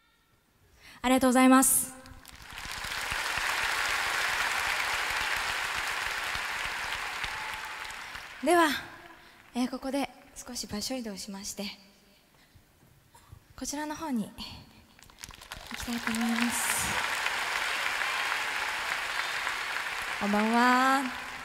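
A young woman calls out loudly through a microphone over loudspeakers.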